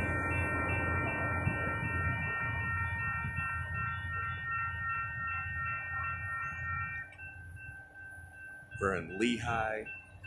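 A train rumbles along the tracks and fades into the distance.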